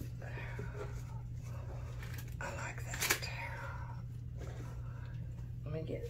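Plastic sheeting crinkles under hands.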